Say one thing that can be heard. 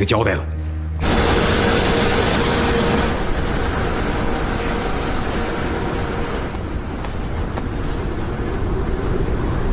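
A snow cannon blasts out a loud, steady roar of spray.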